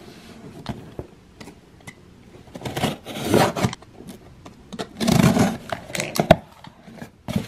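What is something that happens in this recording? A box cutter slices through packing tape on a cardboard box.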